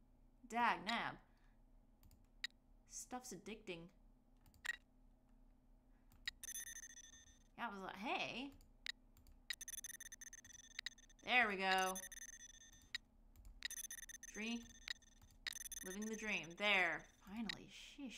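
A young woman speaks casually into a close microphone, in short bursts.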